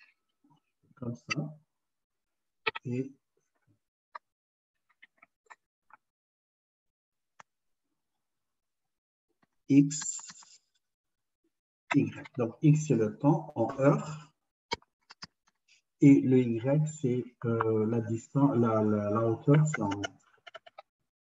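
A man talks calmly over an online call, pausing between phrases.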